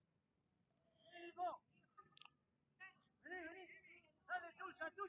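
Young players shout to each other outdoors.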